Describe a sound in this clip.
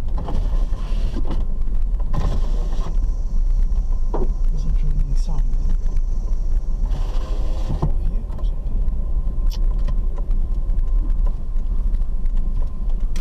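A car's body rattles and knocks over bumps.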